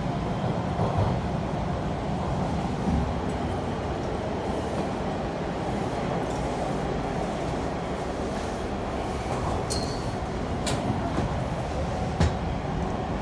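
Metal parts of a subway car clank and knock now and then.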